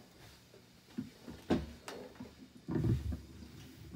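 An acoustic guitar's wooden body knocks and thumps as it is handled.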